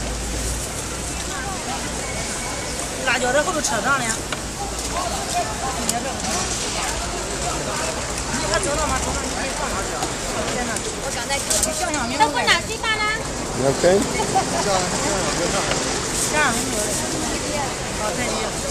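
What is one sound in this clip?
A man and a woman talk nearby outdoors.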